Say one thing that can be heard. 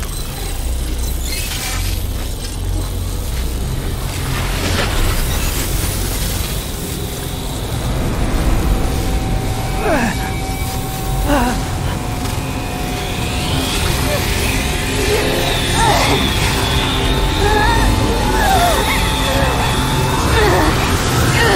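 Electricity crackles and bursts loudly.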